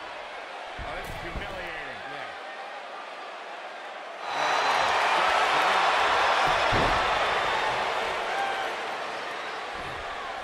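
Bodies thud onto a wrestling mat.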